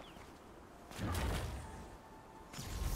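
A magic spell bursts with a whooshing rush.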